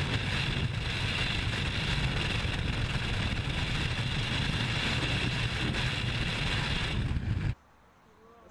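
Wind roars loudly and steadily past a falling skydiver.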